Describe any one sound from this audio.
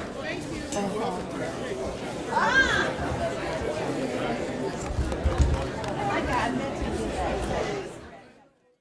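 A crowd of men and women chatter.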